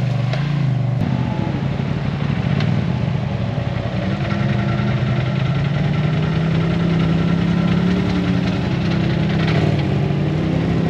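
A car engine idles with a low steady rumble close by.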